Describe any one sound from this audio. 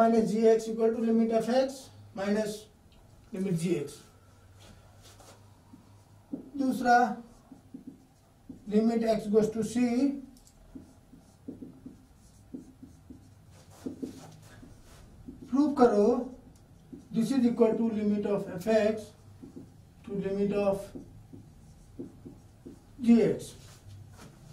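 A man speaks calmly and clearly, explaining.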